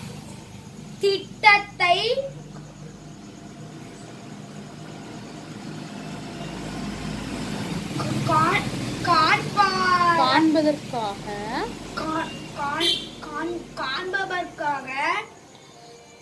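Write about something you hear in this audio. A young boy reads aloud close by, in bursts.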